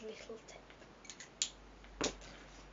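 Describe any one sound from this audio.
Small plastic items click and rustle as they are handled.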